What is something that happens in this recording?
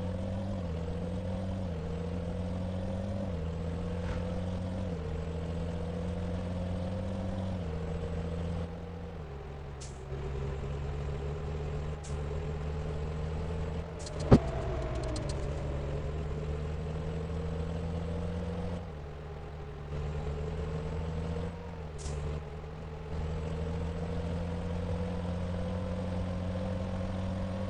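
A truck engine hums steadily, its pitch shifting as it changes gear.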